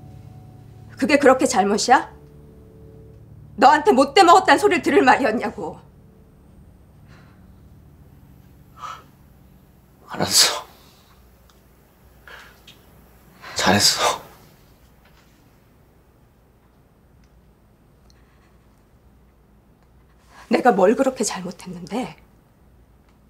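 A woman speaks nearby in a tense, hurt voice.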